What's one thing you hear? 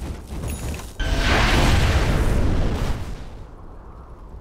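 Fiery magic blasts burst with a loud roaring whoosh.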